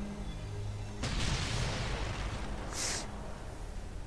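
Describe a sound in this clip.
An explosion booms and rumbles briefly.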